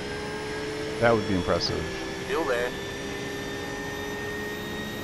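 A racing car engine drones steadily.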